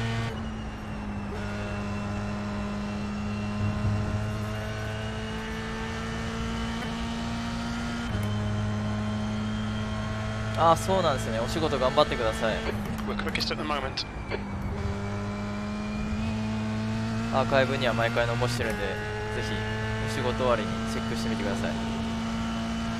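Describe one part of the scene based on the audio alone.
A racing car engine hums steadily, shifting pitch as gears change.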